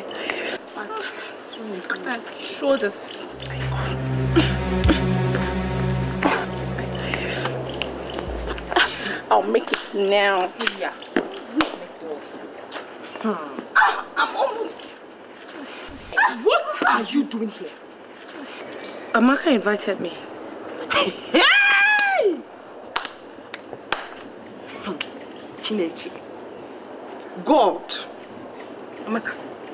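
A young woman speaks loudly and angrily up close.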